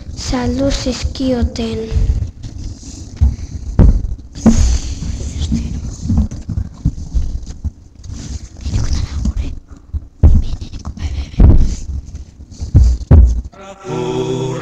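Young children speak close into microphones, taking turns.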